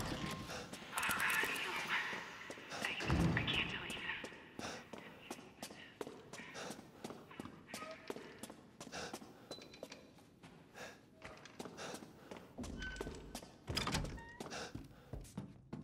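Footsteps tread slowly across a wooden floor.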